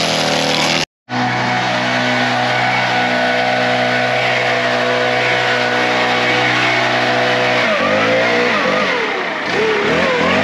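A leaf blower roars steadily.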